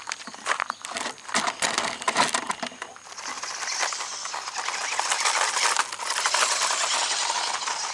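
A small electric motor whirs at high speed.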